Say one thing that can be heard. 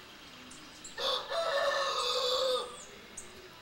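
A small bird sings a bright warbling song close by.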